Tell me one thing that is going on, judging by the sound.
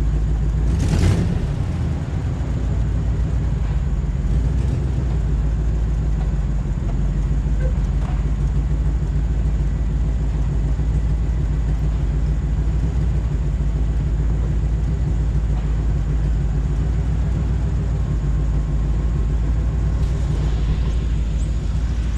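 An air conditioning unit hums steadily outdoors.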